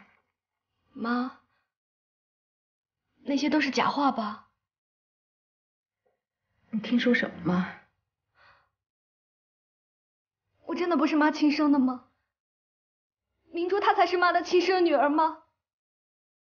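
A young woman speaks close by, upset and questioning.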